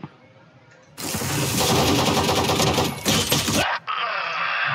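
Gunshots fire in a quick burst.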